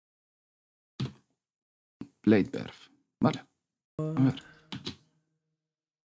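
Short percussive synth hits play in quick bursts.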